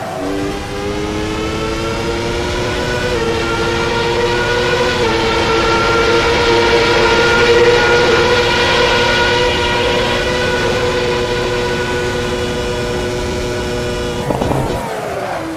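A racing car engine screams at high revs, shifting up through the gears.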